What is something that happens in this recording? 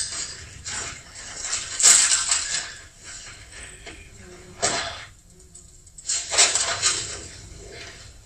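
Dry sticks clatter as an armful of branches is dropped.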